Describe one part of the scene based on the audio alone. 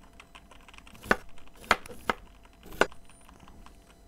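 A knife chops sharply on a cutting board several times.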